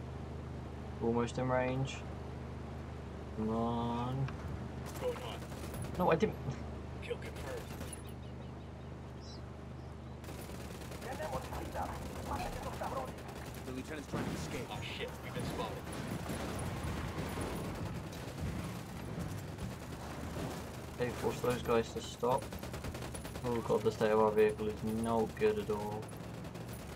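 A young man talks through a headset microphone.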